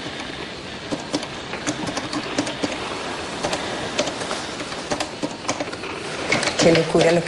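A typewriter clacks in quick bursts.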